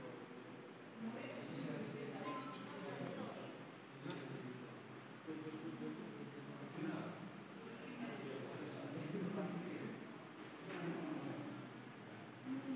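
A young woman talks quietly close by.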